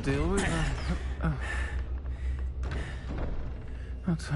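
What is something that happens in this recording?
A man grunts.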